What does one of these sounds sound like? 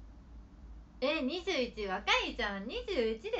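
A young woman laughs brightly and close to a microphone.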